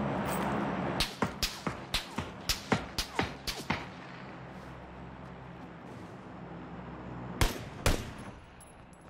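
Gunshots ring out in quick succession.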